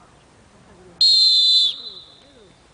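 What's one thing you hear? A referee's whistle blows a sharp blast.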